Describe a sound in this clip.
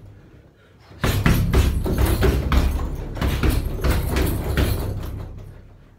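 Fists thud repeatedly against a heavy punching bag.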